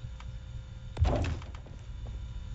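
A heavy machine thuds down into place.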